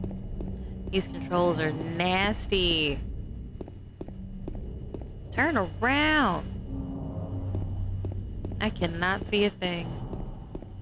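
A young woman talks loudly close to a microphone.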